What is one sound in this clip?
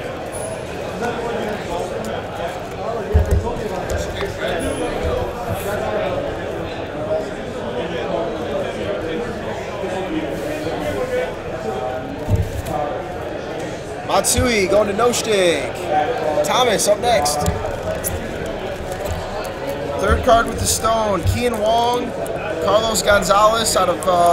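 Plastic card cases click and knock against each other.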